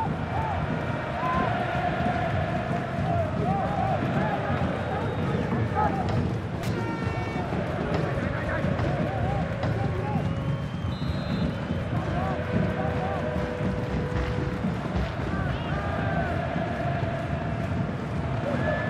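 A stadium crowd roars and chants steadily throughout.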